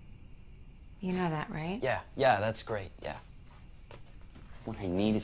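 A young woman speaks quietly and tensely nearby.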